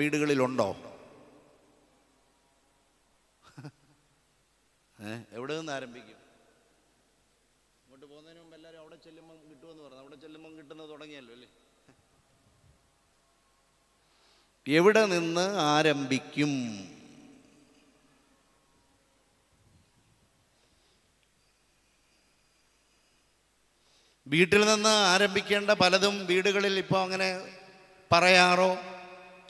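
An elderly man speaks with animation into a microphone, with pauses, in a large echoing hall.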